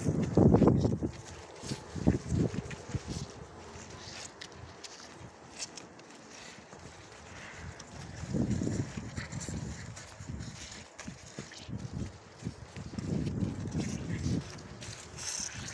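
Horses' hooves crunch and shuffle through dry straw and mud close by.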